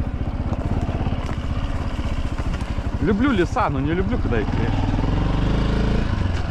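A motorbike engine runs with a low, steady rumble.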